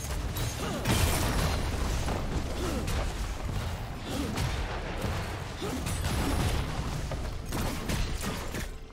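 Game spell effects crackle and boom in a busy fight.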